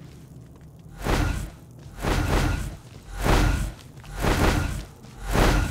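Heavy blasts boom one after another.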